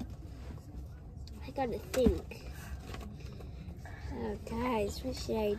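A low road rumble hums steadily inside a car.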